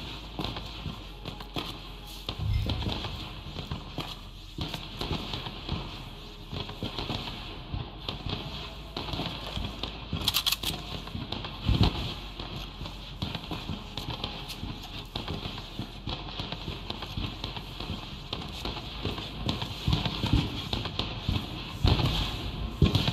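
Footsteps thud softly on wooden boards.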